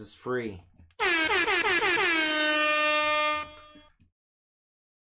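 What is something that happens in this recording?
An air horn blares loudly.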